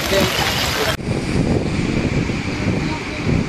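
Water roars as it pours over a dam.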